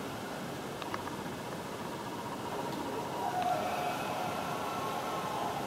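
A hockey video game's crowd noise roars steadily through a television speaker.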